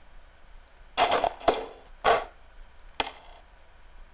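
Short electronic blips sound as menu options change.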